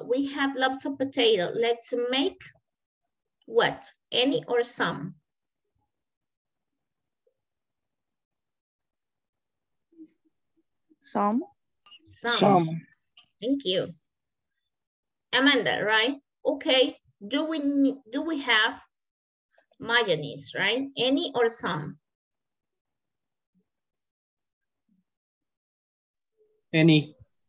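A young woman speaks calmly over an online call, with pauses.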